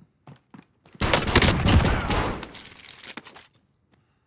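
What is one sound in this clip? Pistols fire in rapid bursts in a video game.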